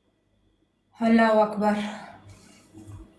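A young woman sings a short phrase, heard through a phone.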